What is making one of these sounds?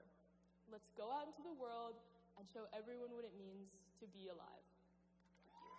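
A young woman speaks into a microphone in a large echoing hall.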